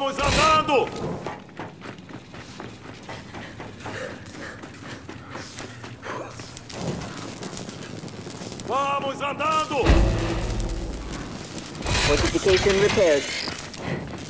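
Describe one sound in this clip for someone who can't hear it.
Heavy armoured footsteps thud on hard ground.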